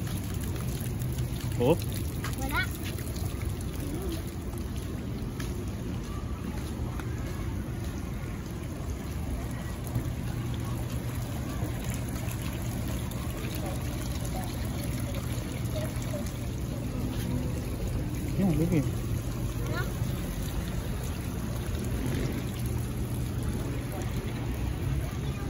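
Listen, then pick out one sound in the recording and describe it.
Small fountain jets splash and trickle steadily into a pool.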